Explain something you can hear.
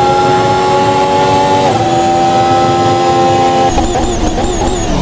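A Formula One car's V6 turbo engine screams at high revs.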